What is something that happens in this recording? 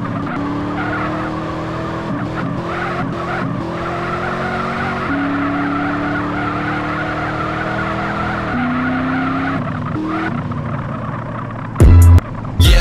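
A car engine revs high and shifts gears.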